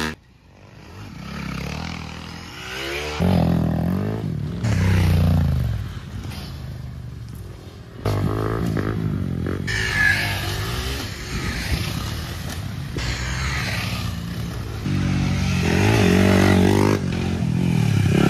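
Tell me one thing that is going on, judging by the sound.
Motorcycle engines rev loudly, rising and falling as bikes roar past close by.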